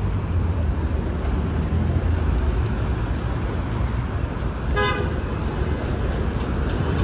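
Footsteps tap on a paved sidewalk.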